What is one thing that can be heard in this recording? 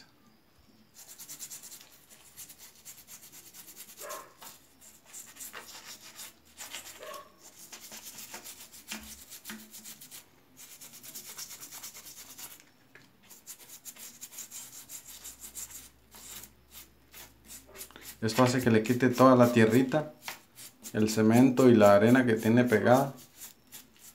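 A brush scrubs rapidly against stone.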